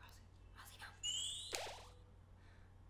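A bright rising chime sounds from a game.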